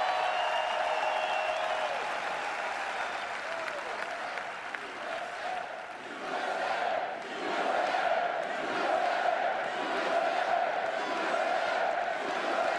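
A large crowd cheers and shouts in a big echoing hall.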